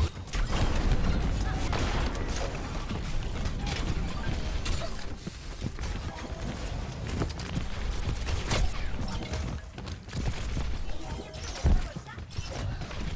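Rapid gunfire crackles and bursts repeatedly.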